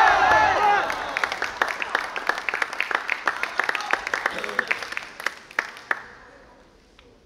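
Spectators clap their hands in applause.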